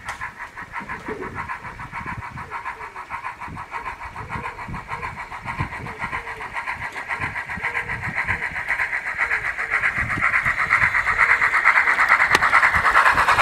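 A small model steam locomotive chuffs rhythmically as it approaches.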